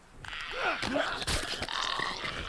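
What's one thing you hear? A wooden plank strikes a body with a heavy thud.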